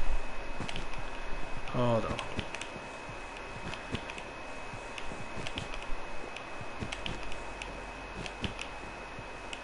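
Blocks crack and break with short, repeated clicks.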